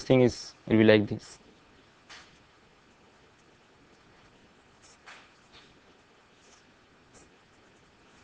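A marker pen squeaks and scratches softly on paper.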